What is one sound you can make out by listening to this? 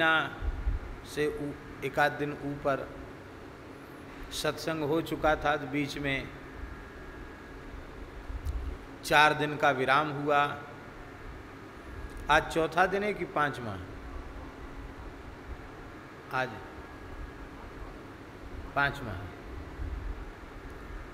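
A middle-aged man speaks calmly into a microphone in bursts with pauses.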